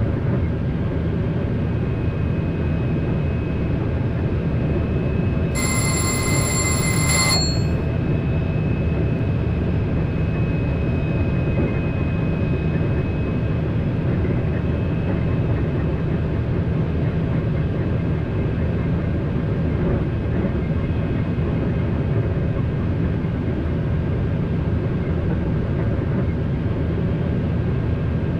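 A train rumbles steadily along the tracks at high speed.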